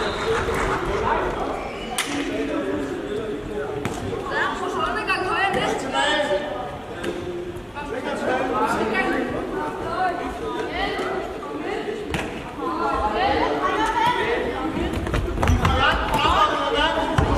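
Children shout and call out to each other in a large echoing hall.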